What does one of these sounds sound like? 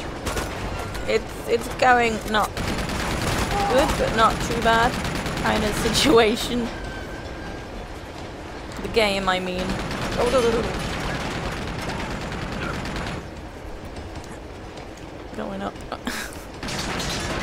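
A young woman talks casually and close into a microphone.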